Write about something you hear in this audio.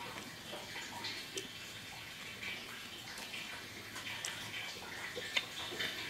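A man chews close to the microphone.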